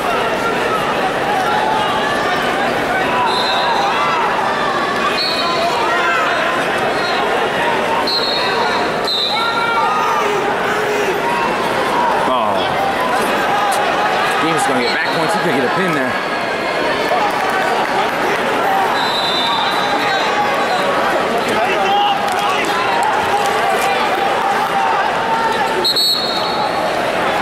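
A large crowd cheers and shouts throughout a big echoing hall.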